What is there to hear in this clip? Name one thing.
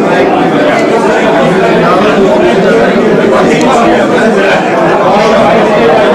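An elderly man and a woman talk closely with each other.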